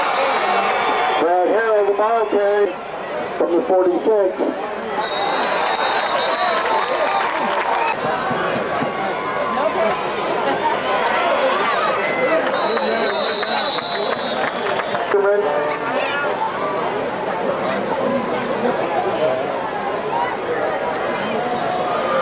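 A crowd cheers and shouts from the stands outdoors.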